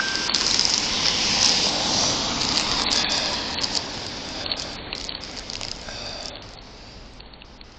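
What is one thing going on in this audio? A car drives past on a wet road.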